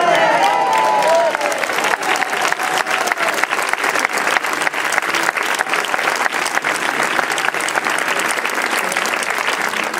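An acoustic guitar is strummed and plucked rapidly.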